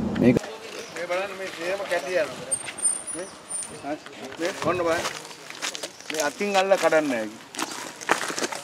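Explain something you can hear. Men talk calmly nearby, outdoors.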